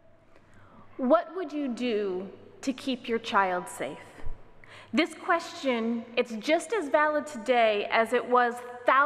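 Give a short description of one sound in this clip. A woman speaks with animation into a microphone in an echoing hall.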